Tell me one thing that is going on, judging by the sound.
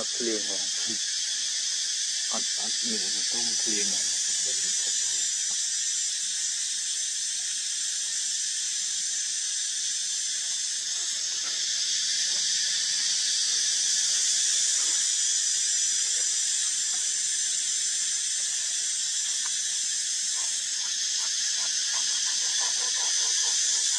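A baby monkey suckles softly at close range.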